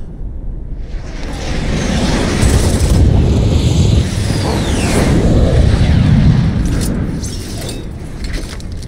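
A loud rushing roar of ships and explosions swells up.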